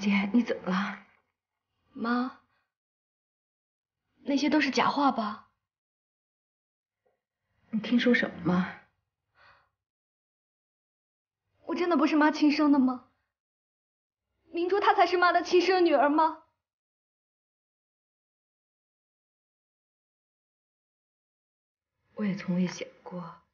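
A middle-aged woman speaks close by in a sad, pleading voice.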